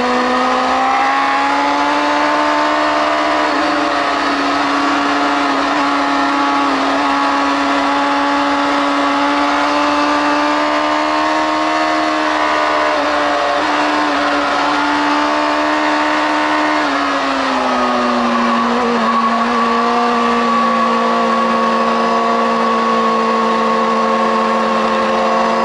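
A motorcycle engine roars loudly and steadily up close, its pitch shifting with the gears.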